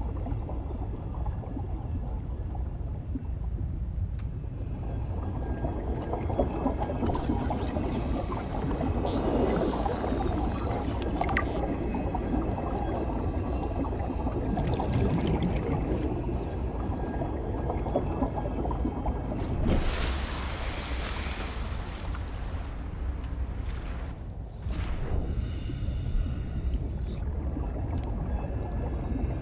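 Water rumbles and churns in a low, steady wash.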